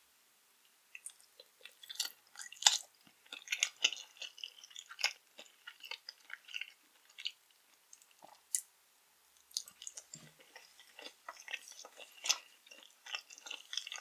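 A woman chews and crunches sticky candy close to a microphone.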